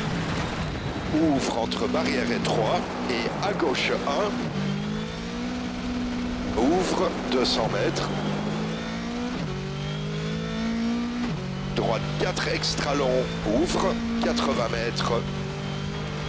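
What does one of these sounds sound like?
Gravel crackles and pops under the tyres.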